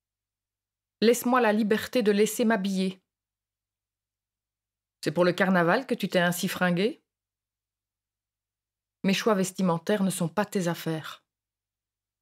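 A young woman speaks calmly in short phrases, close to a microphone.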